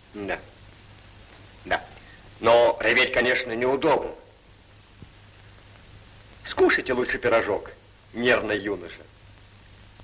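A man speaks in a friendly voice close by, heard through an old, slightly humming recording.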